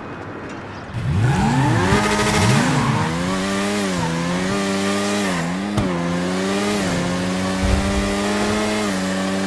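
A motorcycle engine revs up and roars as the bike speeds along, rising and falling in pitch as it shifts gears.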